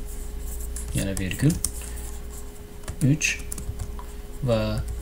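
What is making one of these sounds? A young man speaks calmly in short bursts, close to a microphone.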